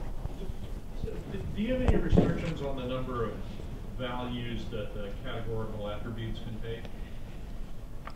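A man in the audience asks a question from a distance.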